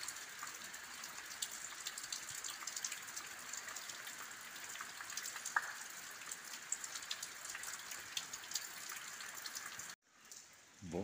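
Rain patters steadily on gravel.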